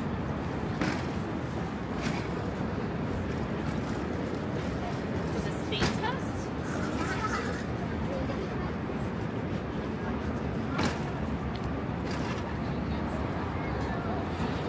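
Footsteps tap on a pavement as people walk.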